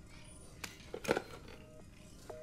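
A telephone handset clatters as it is lifted.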